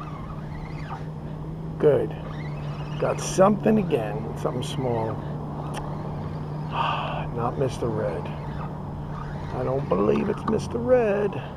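A fishing reel clicks softly as its handle is cranked.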